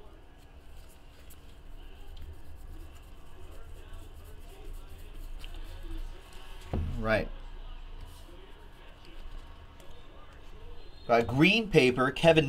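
Trading cards rustle and slide against each other in a man's hands.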